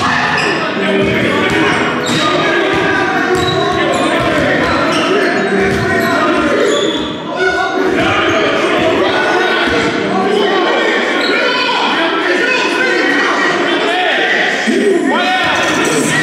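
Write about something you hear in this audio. Young men shout and talk loudly across the hall.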